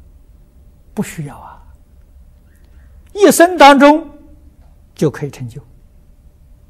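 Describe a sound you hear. An elderly man speaks calmly and clearly into a microphone, in short phrases with pauses.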